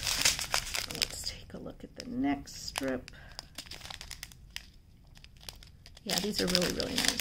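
Small hard pellets rattle and shift inside a plastic bag.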